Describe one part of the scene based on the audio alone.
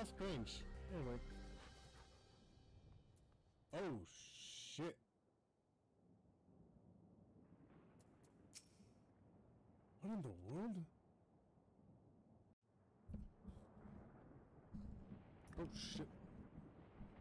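Game sound effects chime and swoosh.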